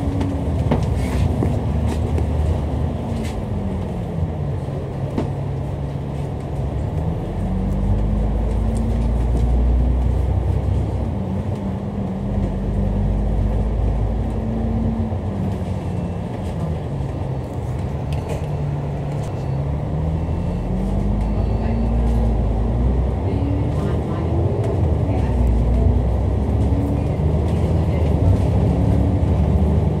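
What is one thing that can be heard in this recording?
A bus engine hums and rises and falls in pitch as the bus drives along.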